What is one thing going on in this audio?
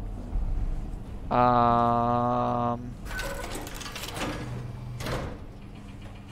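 A heavy metal door grinds open.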